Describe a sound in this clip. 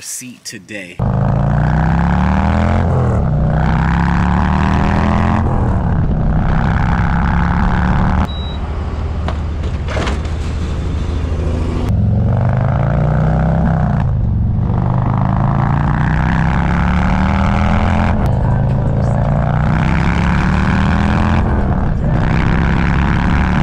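A motorcycle engine roars and revs up through the gears.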